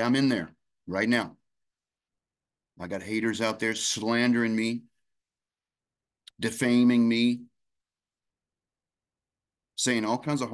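A middle-aged man speaks calmly and expressively into a microphone close by, in short bursts with pauses.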